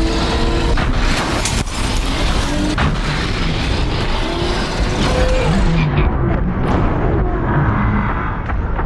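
A large machine clanks and stomps.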